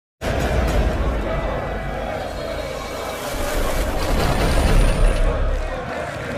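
A large crowd cheers loudly.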